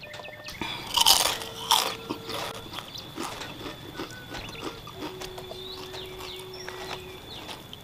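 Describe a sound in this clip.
A young man slurps noodles and chews noisily close to a microphone.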